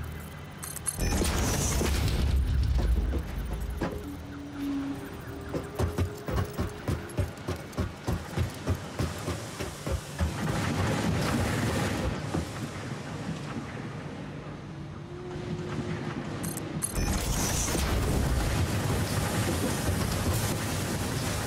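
A metal structure clanks into place with crackling sparks.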